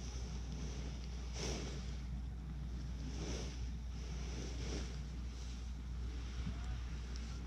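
Wind gusts and rumbles against the microphone outdoors.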